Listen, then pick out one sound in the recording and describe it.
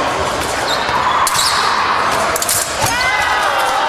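Fencing blades clash and click.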